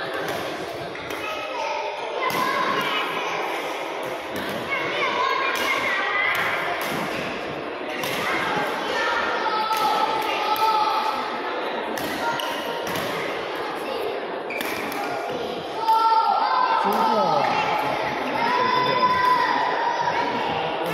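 Sneakers squeak sharply on a sports floor.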